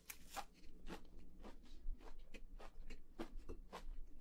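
Chopsticks click against a plate.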